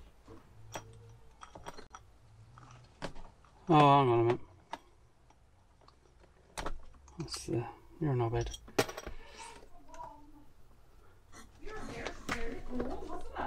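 Plastic parts click and knock as a man works on them.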